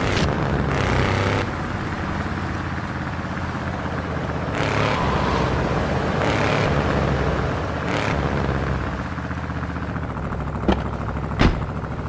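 A car engine roars steadily as the car drives along a street.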